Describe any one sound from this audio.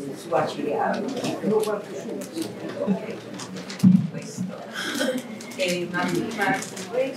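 Wrapping paper rustles as a gift is unwrapped.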